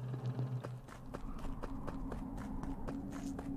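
Small footsteps patter quickly and evenly on a hard floor.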